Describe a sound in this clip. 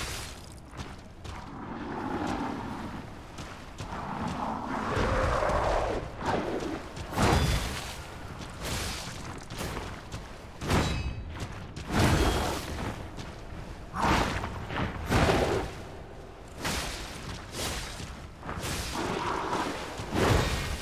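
Heavy blows and weapon strikes thud and clang.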